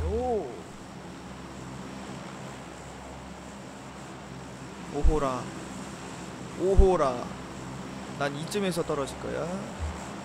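A propeller plane's engines drone steadily.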